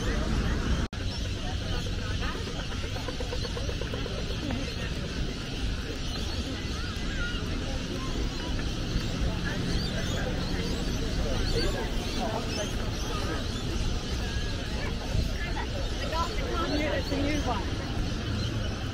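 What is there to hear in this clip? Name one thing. Flip-flops slap on the road as people walk.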